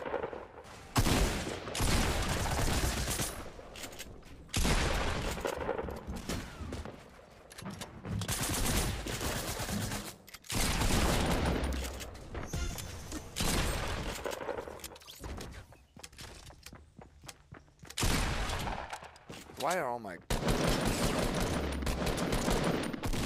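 Gunfire cracks in rapid bursts from a video game.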